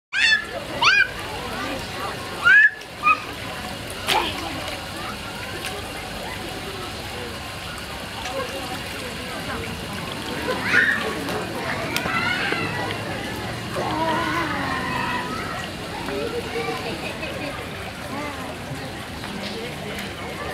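Shallow water trickles and splashes from a ground fountain.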